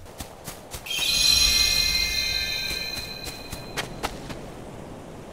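A bright magical chime rings out and slowly fades.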